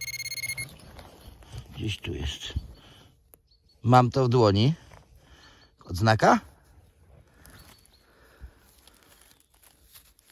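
Hands scrape and dig through loose soil close by.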